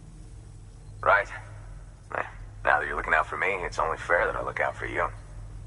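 A man speaks calmly and clearly through a microphone.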